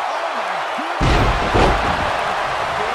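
A body slams onto the ring mat with a heavy thud.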